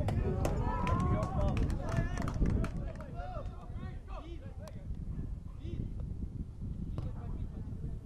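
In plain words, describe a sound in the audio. Young men shout and call out to each other across an open outdoor pitch.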